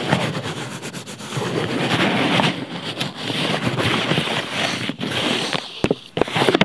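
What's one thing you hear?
Fingers rub and scratch on paper close to a microphone.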